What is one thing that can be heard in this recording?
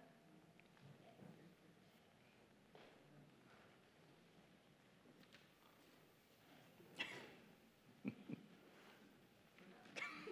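A man speaks calmly at a distance in an echoing hall.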